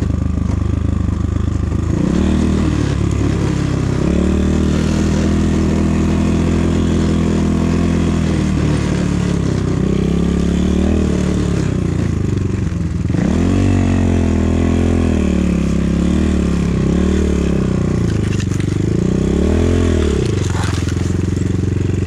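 A motorbike engine drones and revs up and down close by.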